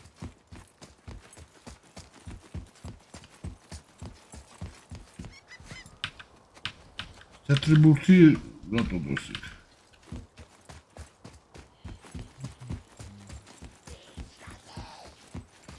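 Heavy footsteps run quickly and steadily over stone.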